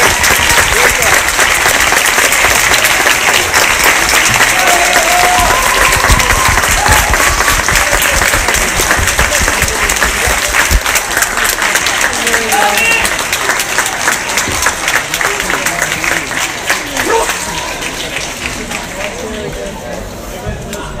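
An audience cheers and whoops.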